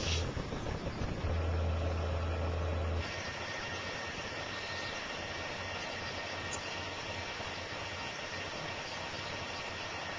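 A laminating machine's rollers hum steadily as a sheet of paper feeds through.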